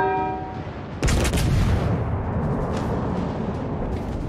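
Ship guns fire with loud booms.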